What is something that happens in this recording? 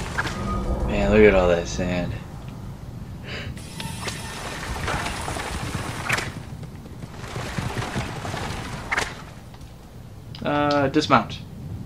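Chariot wheels rumble over the ground.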